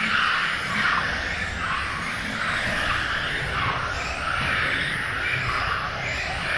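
Small electric model cars whine at high speed, rising and falling as they pass.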